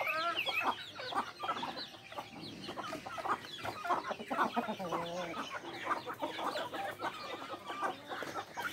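Chicks peep in high, thin voices.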